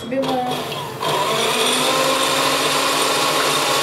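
An electric hand mixer whirs steadily, beating eggs in a glass bowl.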